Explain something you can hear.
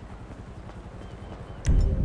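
Footsteps walk on paving stones outdoors.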